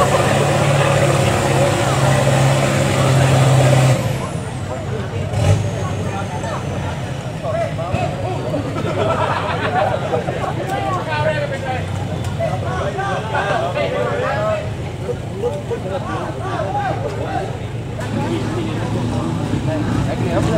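A truck engine idles and rumbles nearby.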